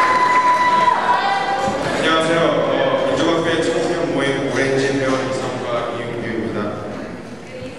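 A young man speaks calmly through a microphone and loudspeakers in an echoing hall.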